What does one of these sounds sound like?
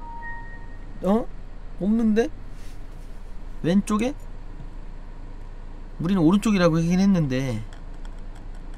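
A young man talks in short bursts through a microphone.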